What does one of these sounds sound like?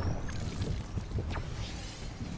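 A character gulps down a drink.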